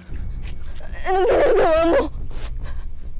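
A young woman cries out with emotion.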